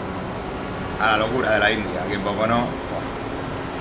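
A young man speaks briefly into a headset microphone.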